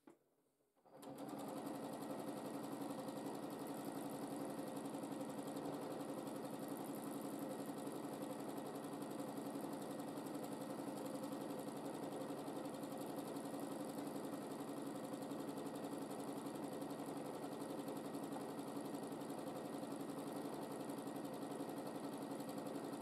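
A sewing machine hums and stitches rapidly.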